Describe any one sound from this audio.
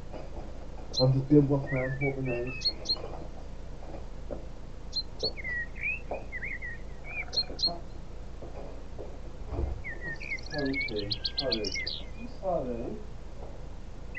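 A young man talks casually into a nearby microphone.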